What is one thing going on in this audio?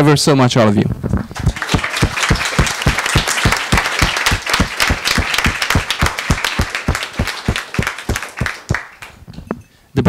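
A small audience claps steadily, then the clapping thins out and stops.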